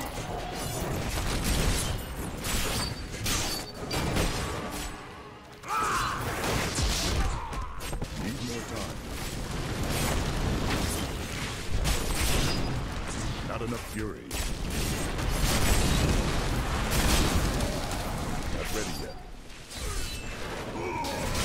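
Video game combat sound effects crash and explode.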